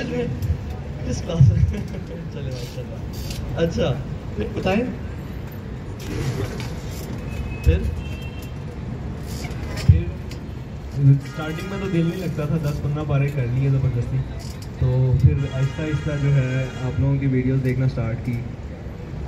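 A man speaks through a loudspeaker outdoors.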